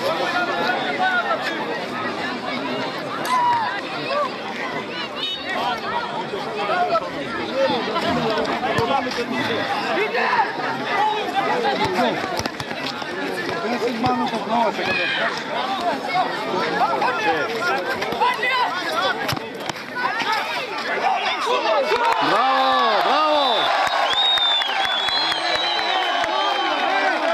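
A crowd of spectators chatters and shouts at a distance outdoors.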